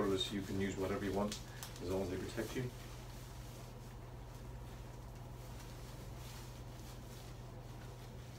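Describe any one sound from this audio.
Rubber gloves rustle and stretch as they are peeled off.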